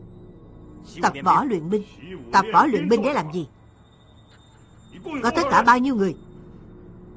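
A middle-aged man speaks sternly nearby.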